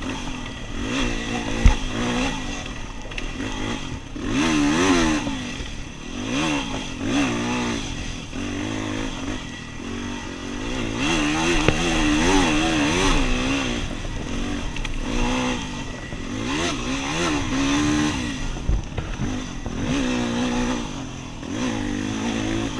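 A motorbike engine revs up and down close by.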